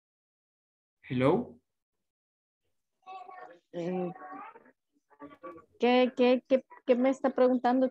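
A woman speaks with animation through an online call.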